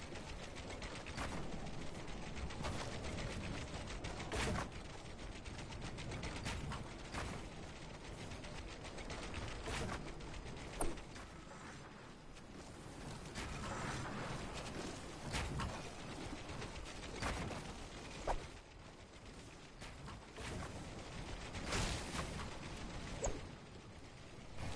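A pickaxe strikes a wall again and again with dull thuds.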